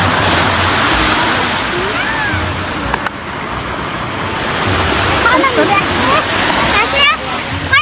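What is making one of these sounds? Small waves wash onto the shore and foam over the sand.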